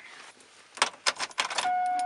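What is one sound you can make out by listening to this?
A key turns in a car's ignition.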